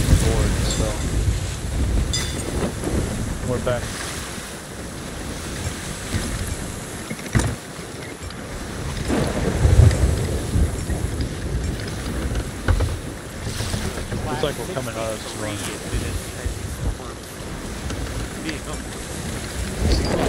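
Heavy waves crash and roar against a wooden ship.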